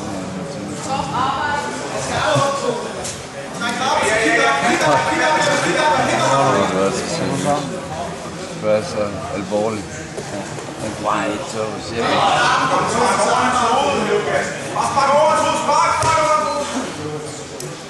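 Men in the crowd shout and cheer loudly.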